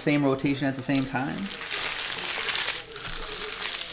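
A foil pack crinkles as it is torn open.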